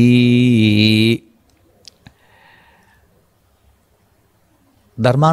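An elderly man chants in a slow, drawn-out voice through a microphone.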